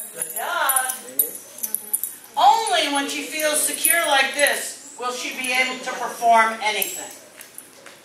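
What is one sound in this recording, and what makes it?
An elderly woman talks calmly and encouragingly nearby.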